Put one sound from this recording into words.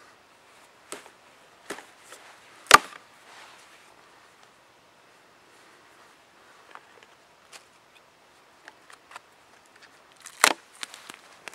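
Small pieces of wood knock and clatter against a log.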